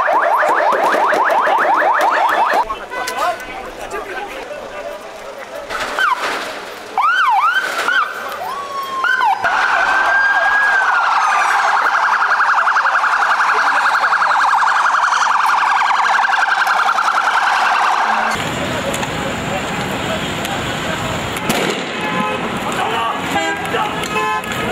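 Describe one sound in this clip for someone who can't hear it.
A crowd of men shouts and chants outdoors.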